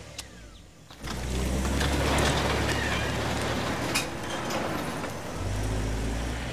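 A car engine hums as a car drives up and stops.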